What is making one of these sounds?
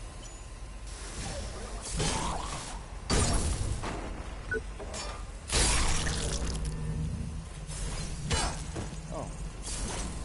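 Heavy metal blows clang and crash in a violent fight.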